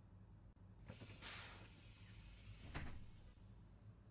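Bus doors close with a hiss of air.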